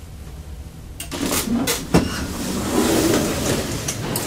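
Elevator doors slide open with a rumble and a thud.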